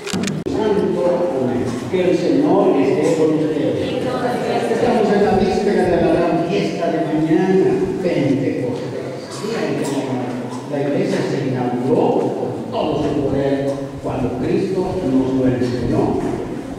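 A crowd of men and women sings a slow song together.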